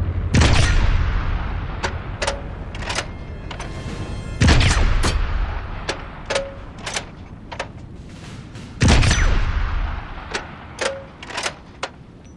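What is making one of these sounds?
A rifle bolt clicks and clacks between shots.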